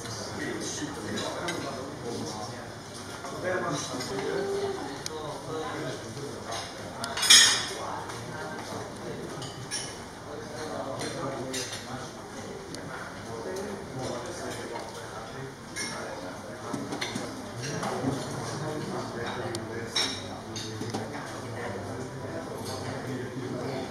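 A serving spoon clinks against a plate.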